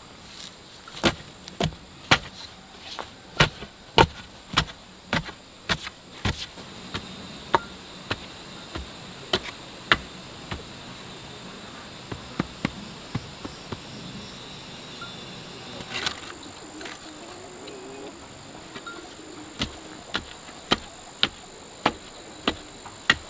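A tool thumps repeatedly into packed soil.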